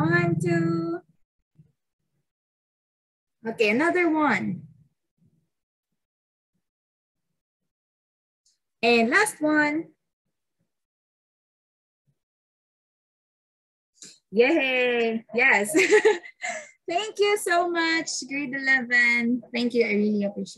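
Young women speak animatedly over an online call, in short bursts.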